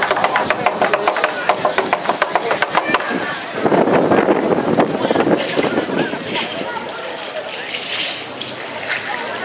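A large drum beats in a steady rhythm outdoors.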